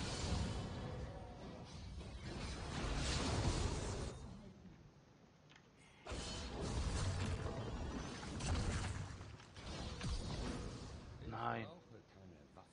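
Game combat effects clash and burst.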